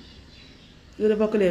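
A woman speaks loudly close to the microphone.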